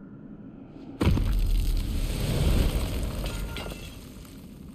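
A loud rushing gust of wind roars and slowly fades.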